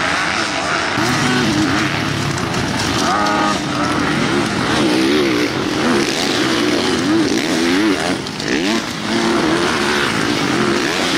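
A motorcycle engine roars up and down in pitch as a rider jumps.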